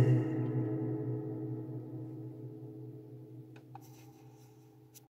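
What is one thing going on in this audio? A ukulele chord rings out and slowly fades away.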